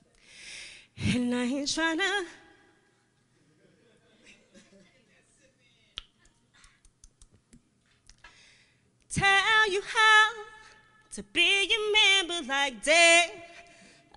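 A young woman sings loudly into a microphone, with a wavering voice.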